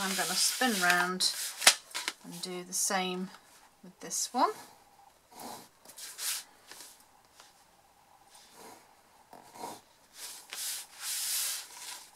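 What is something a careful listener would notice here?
Paper rustles and slides.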